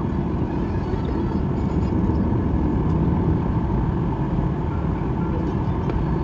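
A jet engine roars steadily, heard from inside an airplane cabin.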